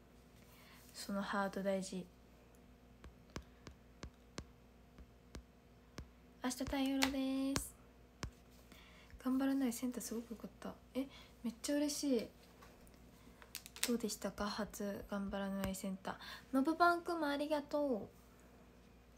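A young woman talks calmly and close to a microphone, in short bursts with pauses.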